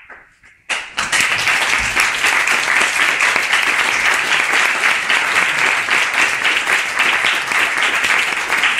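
A piano plays quickly.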